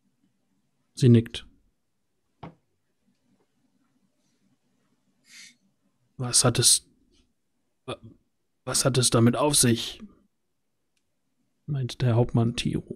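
A man speaks with animation through a microphone, as in an online call.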